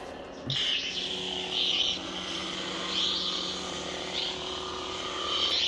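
A toy lightsaber swooshes loudly as it swings.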